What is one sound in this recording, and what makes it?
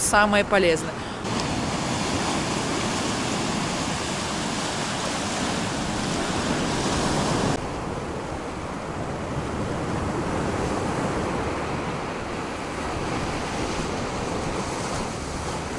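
Waves wash and break against a rocky shore.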